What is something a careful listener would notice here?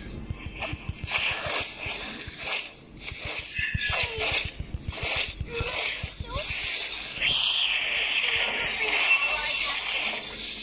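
Game characters strike with sharp impacts.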